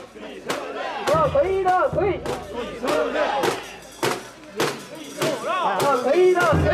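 A crowd of men chant loudly together outdoors.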